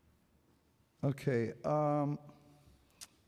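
An elderly woman speaks briefly into a microphone.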